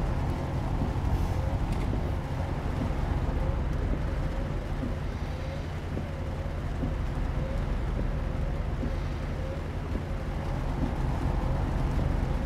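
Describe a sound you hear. Windshield wipers sweep back and forth with a regular squeak.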